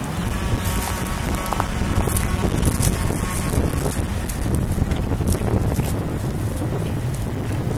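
Footsteps crunch on dry grass and leaves.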